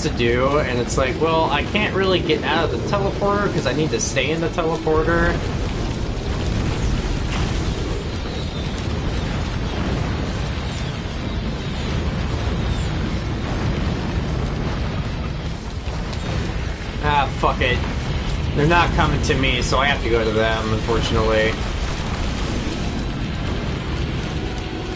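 Deep rumbling and booming game sound effects play throughout.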